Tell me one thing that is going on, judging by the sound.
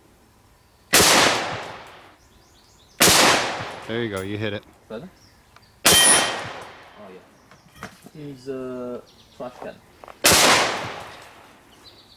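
Gunshots ring out loudly outdoors, one at a time, each echoing away.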